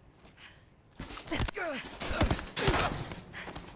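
A body crashes heavily onto a floor.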